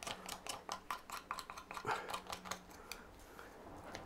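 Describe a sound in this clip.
A knife scrapes and chips at wood in quick strokes.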